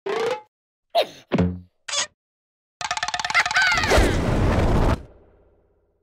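A cartoonish male voice squeaks and babbles in short bursts.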